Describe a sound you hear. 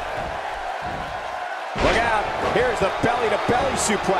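A heavy body slams onto a wrestling ring mat with a thud.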